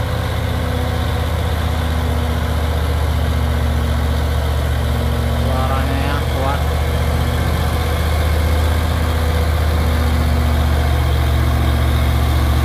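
A heavy truck's diesel engine rumbles steadily as it pulls slowly uphill.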